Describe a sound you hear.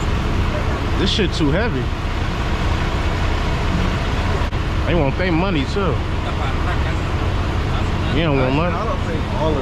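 A man orders at a window, speaking at a distance.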